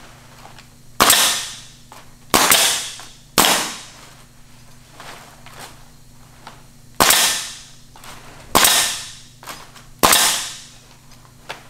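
A pneumatic nail gun fires in sharp bangs, each followed by a hiss of air.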